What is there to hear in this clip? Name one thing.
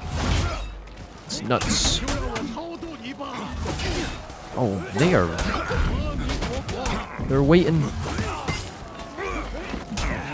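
Metal weapons clash and strike in a fight.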